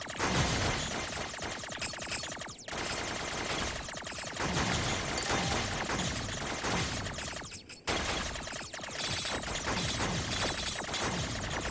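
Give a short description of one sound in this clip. Rapid electronic blasts fire in quick bursts.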